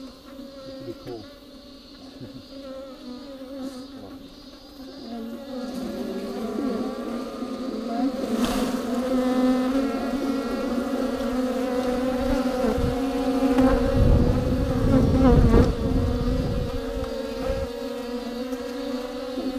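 A swarm of bees buzzes up close, growing louder and more agitated.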